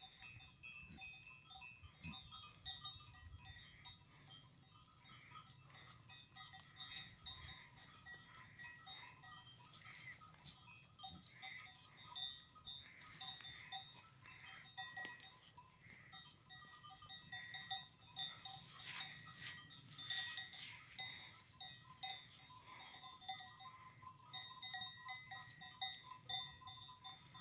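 Many bells on a herd of goats clink and tinkle steadily outdoors.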